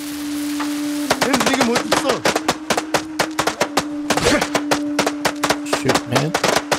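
A firecracker pops and crackles in rapid bursts.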